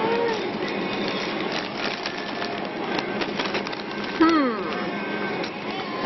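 Crisp bags crinkle as hands handle them.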